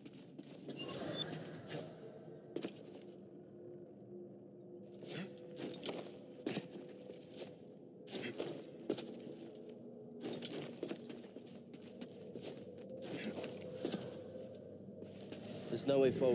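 Footsteps thud on stone.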